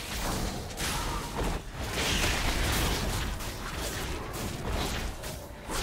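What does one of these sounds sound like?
Spell effects crackle and whoosh as game characters fight.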